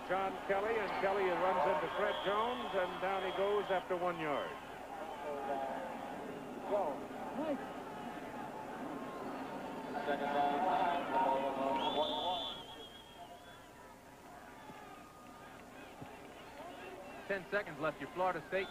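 A large stadium crowd roars and murmurs in the distance.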